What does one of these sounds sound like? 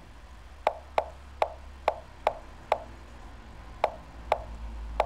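Sharp clicks of chess moves sound in quick succession.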